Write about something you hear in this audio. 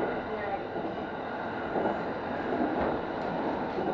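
A passing train rushes by close alongside.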